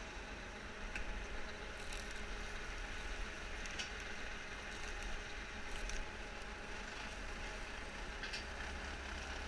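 Metal parts clank and rattle now and then as a hay bale is carried.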